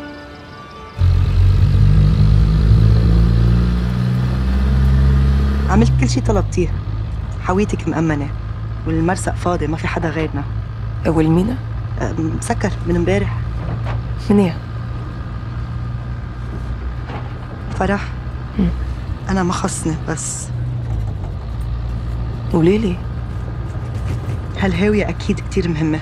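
A vehicle engine starts and rumbles steadily.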